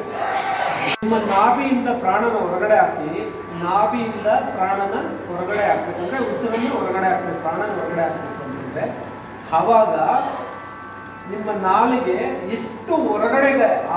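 A man speaks steadily through a microphone in an echoing hall.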